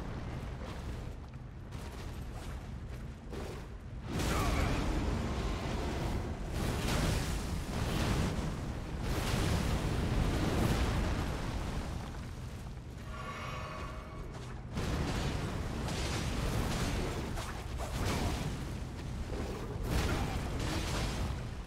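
Metal blades clash and slash in a sword fight.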